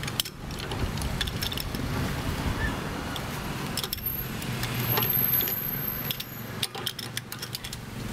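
Metal clicks and scrapes as a valve handle is worked with a tool.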